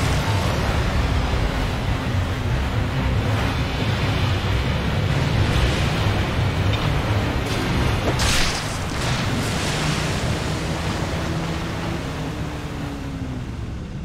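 Water splashes and sprays around a speeding boat.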